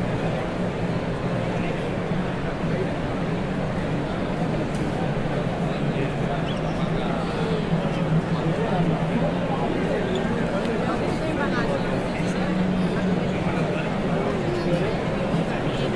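A large crowd chatters loudly all around in a big echoing hall.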